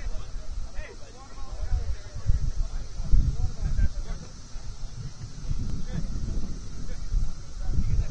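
Young men call out faintly across an open field.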